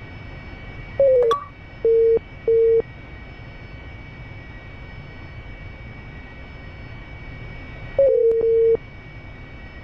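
Short electronic warning tones beep in the cockpit.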